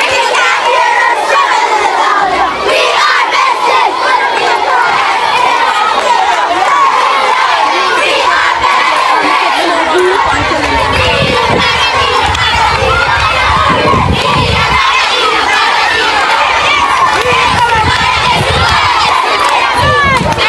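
A crowd of children chants and shouts loudly outdoors.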